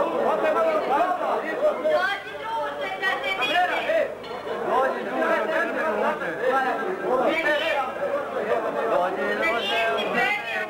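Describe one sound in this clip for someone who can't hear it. A crowd of young men chatters indoors.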